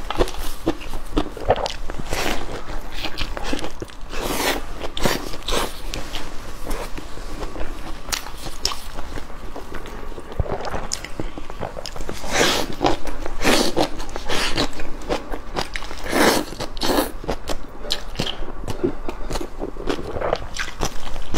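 A young woman chews and slurps food loudly and close to a microphone.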